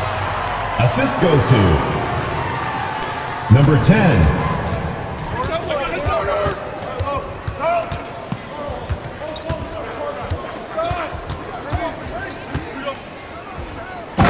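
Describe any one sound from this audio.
A basketball bounces steadily on a wooden floor.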